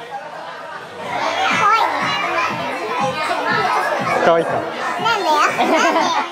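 Several young men chat and laugh together.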